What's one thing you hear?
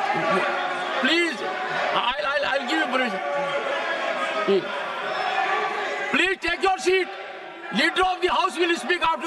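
An elderly man speaks forcefully into a microphone.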